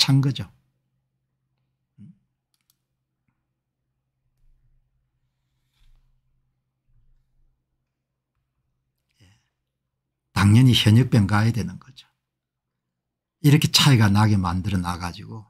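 An older man speaks calmly and close to a microphone, with pauses.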